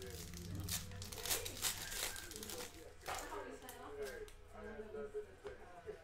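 A foil wrapper crinkles in someone's hands.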